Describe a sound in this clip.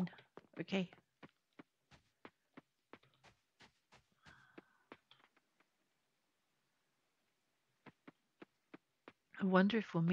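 Footsteps patter quickly on a dirt path.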